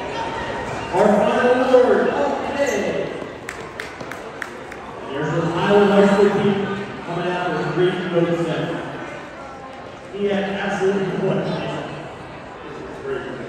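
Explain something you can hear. A man speaks over a loudspeaker, echoing through the hall.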